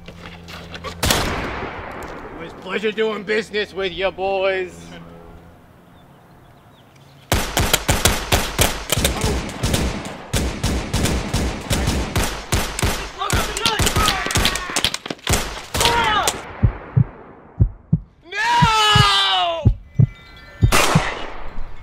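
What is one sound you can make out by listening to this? A gunshot cracks loudly and echoes.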